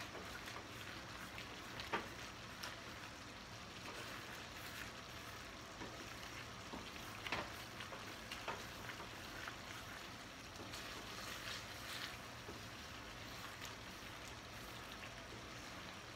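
A wooden spoon stirs and scrapes food in a metal pan.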